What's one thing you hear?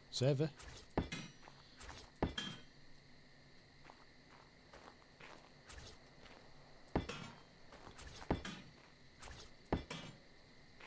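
Wooden building pieces break apart with short crunching knocks.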